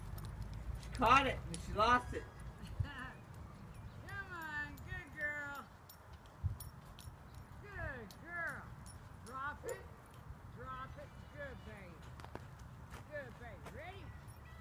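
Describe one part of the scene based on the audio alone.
A man calls out to a dog with an excited, high voice.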